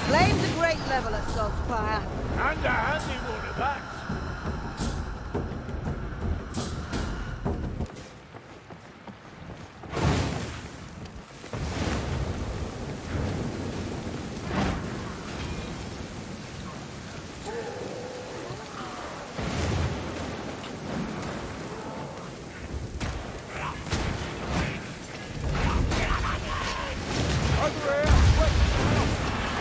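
A heavy gun fires rapid loud blasts.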